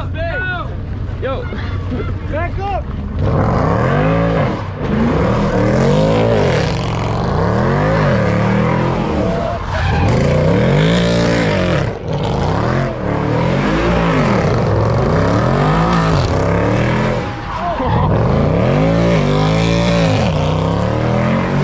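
Tyres squeal loudly as a car spins in circles.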